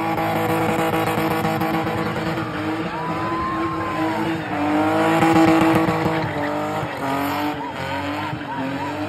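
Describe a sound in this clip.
Tyres screech on the tarmac.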